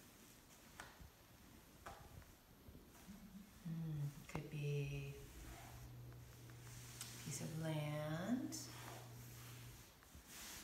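A cloth rustles and brushes against a wooden floor.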